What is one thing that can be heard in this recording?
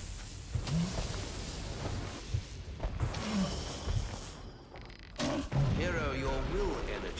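A large beast growls and roars.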